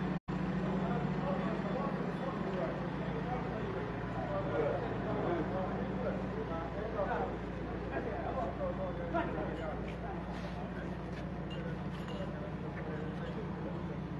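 A crowd of men talk outdoors in the background.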